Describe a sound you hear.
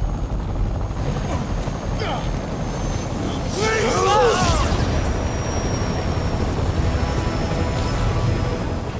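A helicopter engine rumbles steadily nearby.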